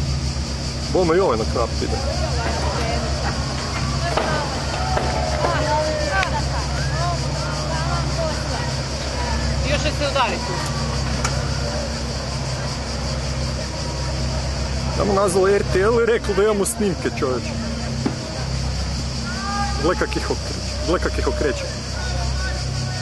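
A boat engine hums steadily close by.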